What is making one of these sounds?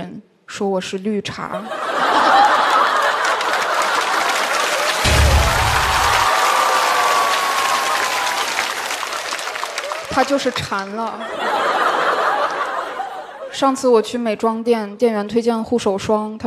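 A young woman speaks into a microphone in a lively, joking way.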